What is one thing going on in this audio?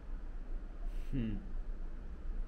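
A young man gives a short hum close by.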